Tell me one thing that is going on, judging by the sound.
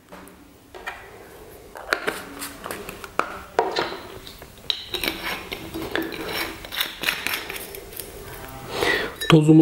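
A plastic bottle crinkles and clicks as it is handled.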